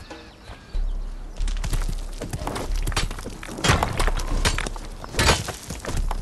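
A pickaxe strikes rock again and again with sharp knocks.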